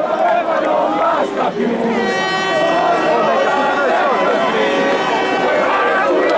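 A large crowd cheers and sings loudly outdoors.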